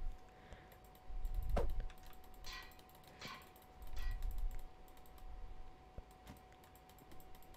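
Video game sound effects click and whoosh.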